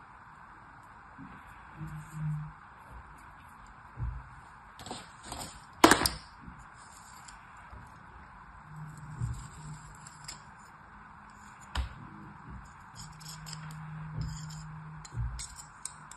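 Soft sand crumbles and rustles under fingers.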